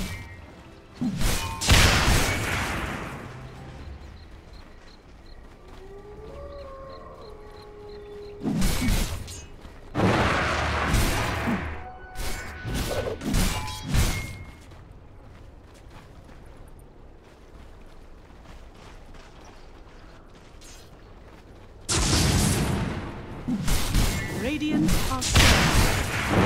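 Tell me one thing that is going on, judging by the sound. Spell effects burst and whoosh in loud bursts.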